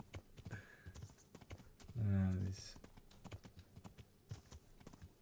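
Horse hooves pound steadily on a dirt path.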